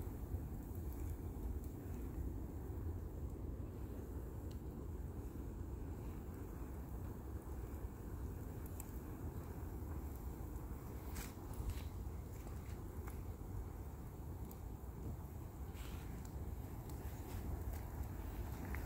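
Burning material crackles and pops.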